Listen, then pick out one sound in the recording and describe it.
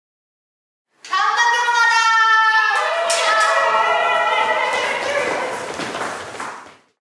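Pop music with a singing voice plays loudly through loudspeakers.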